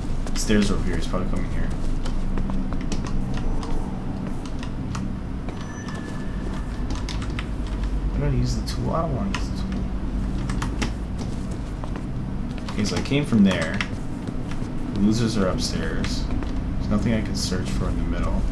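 A young man talks quietly into a close microphone.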